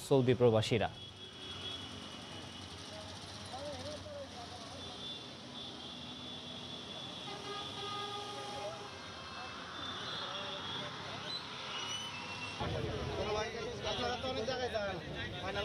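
A crowd of men murmurs and chatters outdoors.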